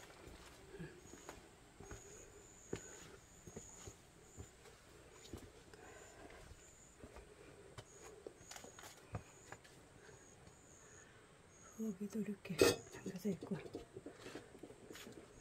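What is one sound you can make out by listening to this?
Footsteps crunch on dry leaves and soil.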